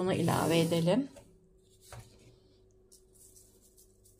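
Chopped onion drops into a pan of vegetables.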